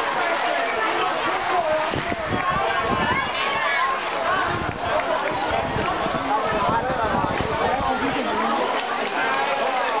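A crowd of spectators cheers and shouts loudly nearby, outdoors.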